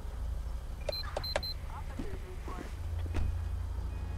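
A car door opens and shuts with a thud.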